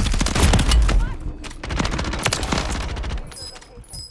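Rapid gunfire bursts loudly and echoes.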